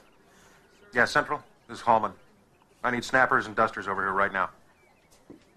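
A man speaks on a phone.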